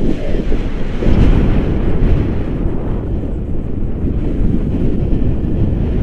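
Strong wind roars and buffets loudly against a microphone outdoors.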